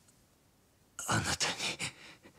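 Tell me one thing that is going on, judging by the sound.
A man speaks in a low, serious voice.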